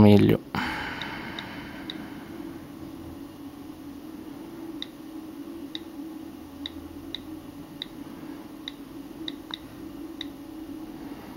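A phone's keyboard gives soft clicks as keys are tapped.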